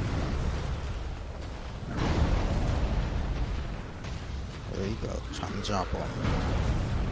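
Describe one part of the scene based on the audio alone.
Heavy thuds and rumbles of a large creature stomping and attacking.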